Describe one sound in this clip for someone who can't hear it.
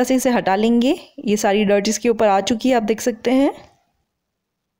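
A young woman speaks close to the microphone with animation.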